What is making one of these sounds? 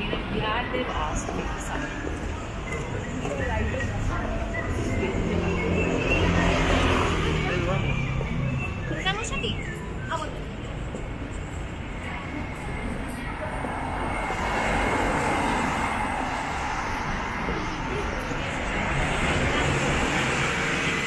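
Traffic rumbles steadily along a nearby street.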